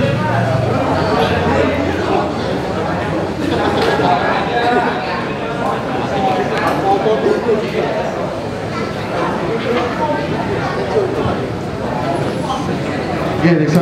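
A band plays loud heavy music through amplifiers.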